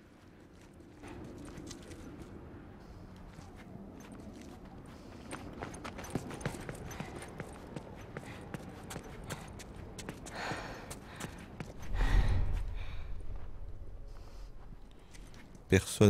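Soft footsteps patter on a hard floor.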